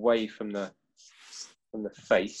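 A spray can hisses in a short burst.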